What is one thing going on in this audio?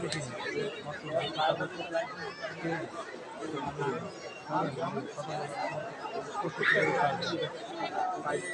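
A large crowd murmurs and chatters in a big open space.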